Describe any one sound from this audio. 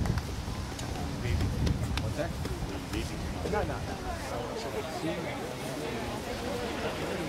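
A woman speaks calmly through a loudspeaker outdoors.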